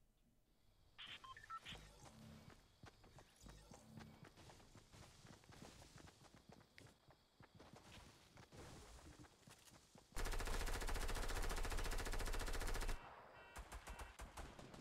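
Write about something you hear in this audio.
Game sound effects of footsteps and clatter play.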